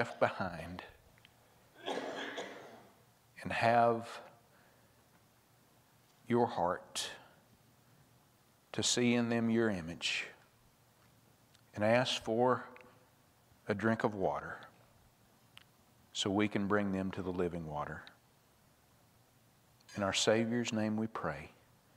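A man speaks calmly through a microphone, with pauses.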